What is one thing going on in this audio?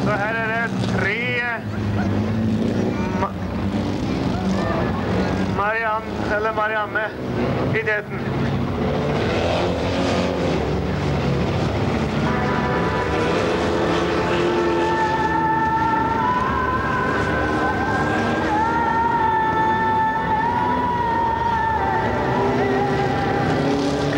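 Rally car engines roar and rev.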